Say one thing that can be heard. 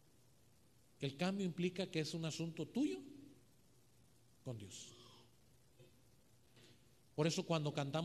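A middle-aged man preaches with animation into a microphone, heard over a loudspeaker.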